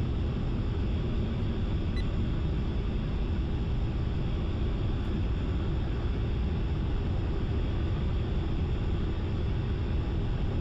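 A jet engine roars steadily.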